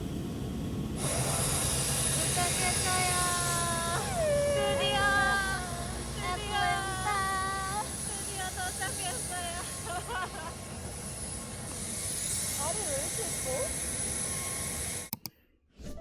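Young women shout and squeal excitedly.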